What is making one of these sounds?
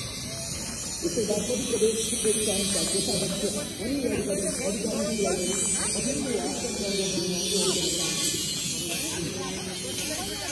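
Young men and women chat nearby outdoors.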